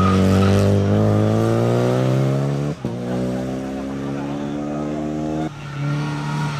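A rally car engine revs hard and shifts gears.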